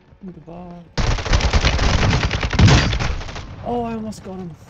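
Rapid gunshots blast loudly.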